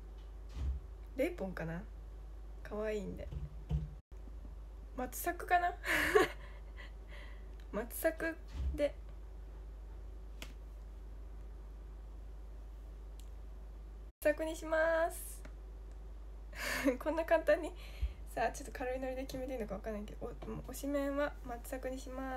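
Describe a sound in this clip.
A young woman talks cheerfully and close to a microphone.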